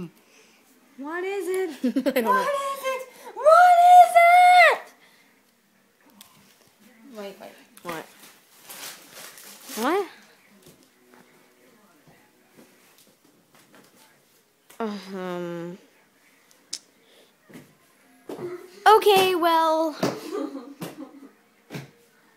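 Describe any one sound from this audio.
A young girl sings loudly and playfully up close.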